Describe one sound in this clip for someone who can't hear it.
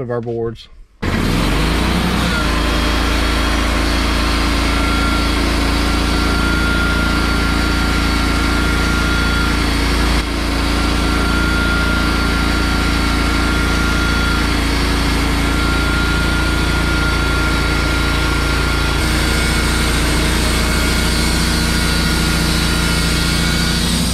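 A sawmill engine starts and runs with a steady loud drone.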